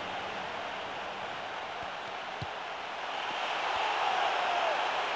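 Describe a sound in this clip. A large stadium crowd roars steadily, swelling louder.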